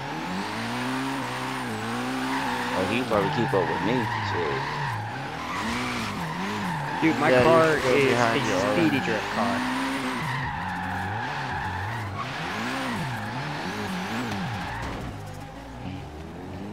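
A car engine revs up and down hard.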